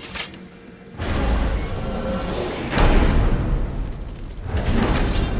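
A heavy stone door grinds open with a deep rumble.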